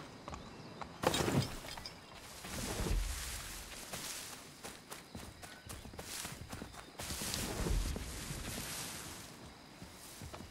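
Plants rustle as someone pushes through them.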